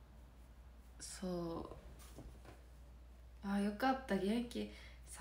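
A young woman speaks calmly and close to a microphone.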